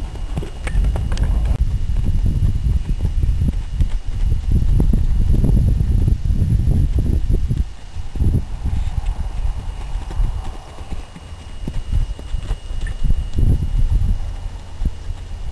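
A horse's hooves thud softly on sand as it trots.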